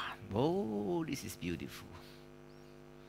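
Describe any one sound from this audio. A man speaks with animation, heard in a room with some echo.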